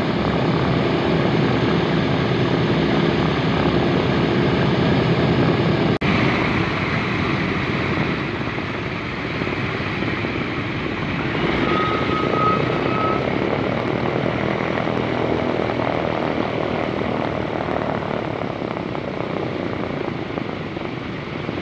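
Several propeller engines of a large plane roar loudly and steadily nearby.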